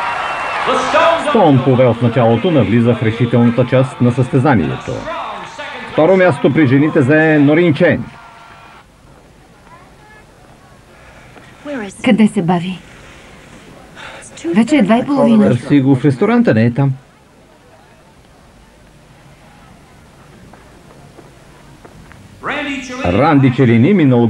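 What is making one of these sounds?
A man speaks loudly through a loudspeaker in a large echoing hall.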